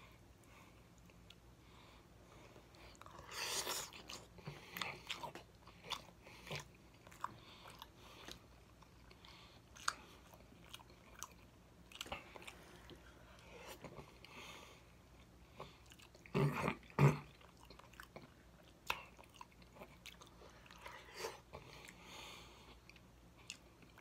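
A man chews and smacks his lips loudly, close up.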